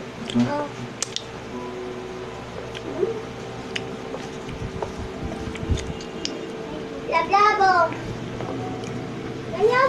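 A young girl sings softly into a microphone, close up.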